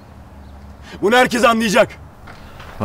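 A young man speaks tensely, close by.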